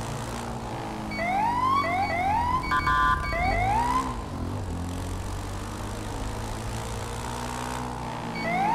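A motorcycle engine drones steadily.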